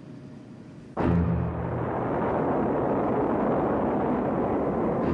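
A jet airliner roars loudly as it flies past.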